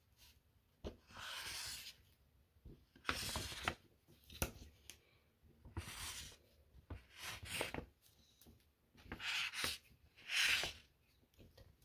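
A felt-tip marker squeaks and scratches across paper.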